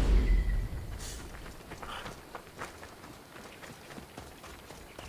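Footsteps crunch quickly over gravel.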